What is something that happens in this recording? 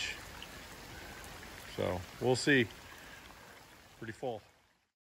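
Rain patters steadily on the surface of the water outdoors.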